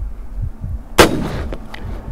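An air rifle fires with a sharp crack.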